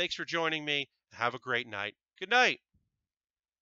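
A man speaks into a headset microphone.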